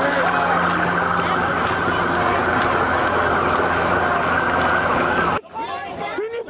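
A large crowd roars and chants loudly outdoors.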